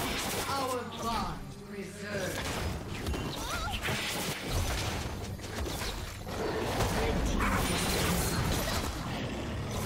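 Spell blasts and sword hits clash in a video game fight.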